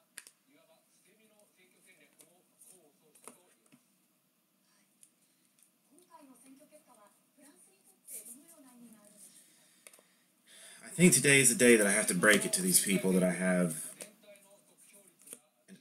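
Trading cards rustle and flick softly as they are shuffled through by hand.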